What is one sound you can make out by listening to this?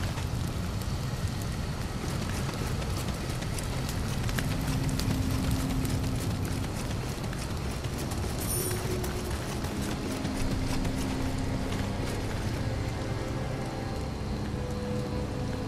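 Footsteps crunch on dirt as a warrior walks.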